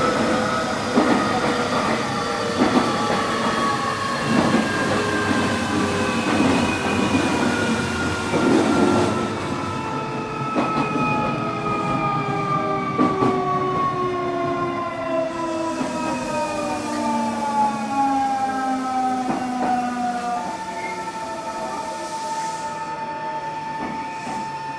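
An electric train hums and whines, its pitch slowly falling.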